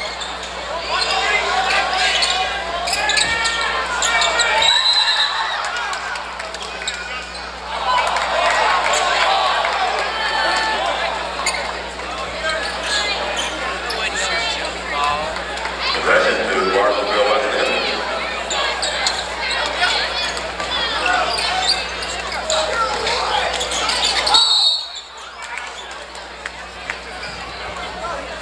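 A crowd of spectators cheers and shouts loudly in a large echoing gym.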